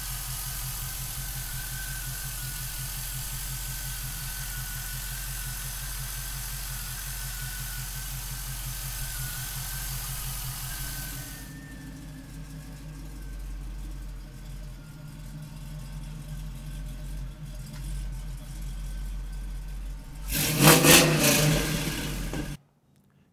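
A car engine idles with a steady, lumpy rumble.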